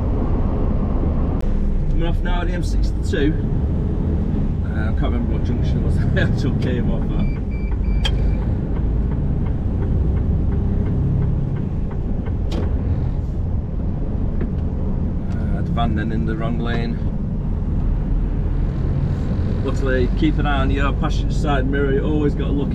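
A car engine hums and tyres rumble steadily on the road.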